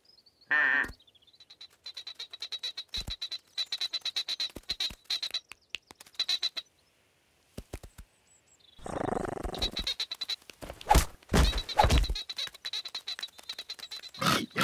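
Small chicks cheep and peep rapidly.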